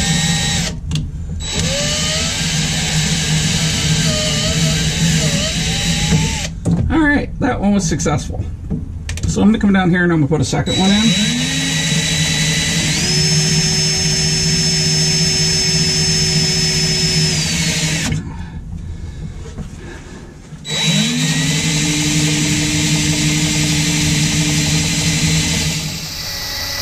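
A cordless power tool whirs in bursts, rising in pitch as it speeds up.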